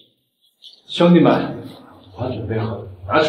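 A young man speaks with a mocking tone.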